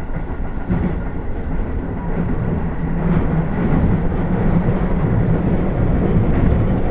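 Train wheels clatter over rail joints.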